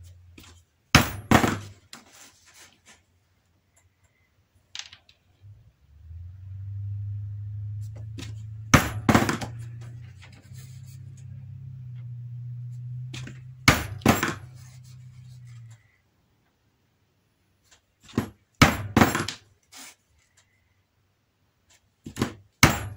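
A mallet strikes a punch through leather with sharp knocks.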